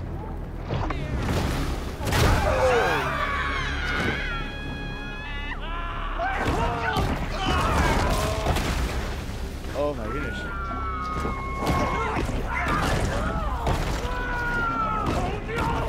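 Water churns and splashes as a shark swims at the surface.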